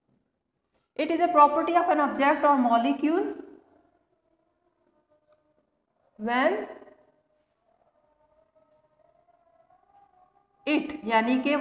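A woman speaks calmly, explaining, in bursts with pauses.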